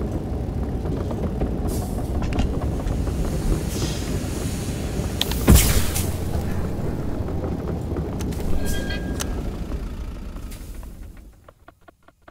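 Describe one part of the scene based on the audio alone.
A heavy engine rumbles and clanks steadily.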